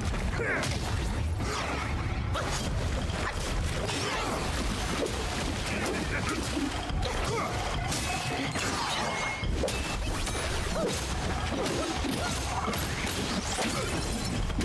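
Metal blades clash and strike in a fight.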